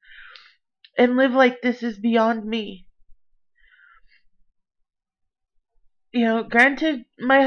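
A young woman talks casually and close to a microphone, with pauses.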